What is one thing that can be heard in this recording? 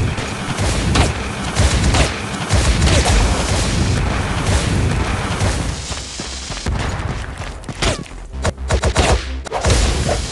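Video game combat effects of sword hits and magic blasts ring out.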